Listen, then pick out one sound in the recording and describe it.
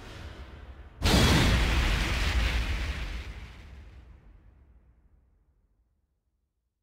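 A loud booming whoosh hits and slowly fades away.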